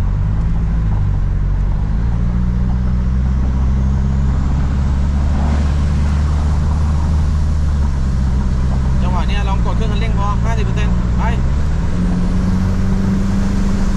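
A car engine hums and drones steadily, rising in pitch near the end.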